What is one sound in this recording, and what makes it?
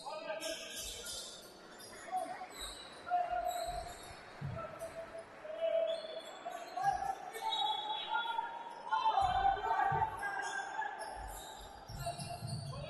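Basketball shoes squeak sharply on a hard court.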